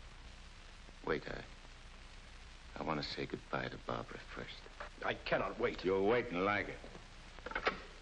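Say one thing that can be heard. A second man speaks tensely in reply.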